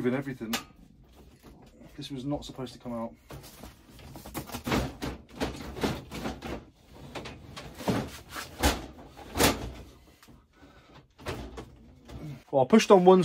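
Metal shelving clanks and knocks as it is handled.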